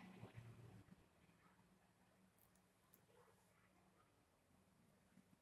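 A small metal compass clicks softly as it is adjusted by hand.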